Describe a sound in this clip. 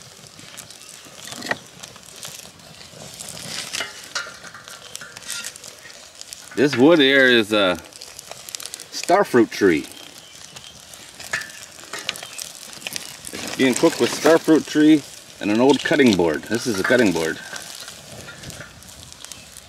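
Wood knocks against a metal stove as it is pushed into the fire.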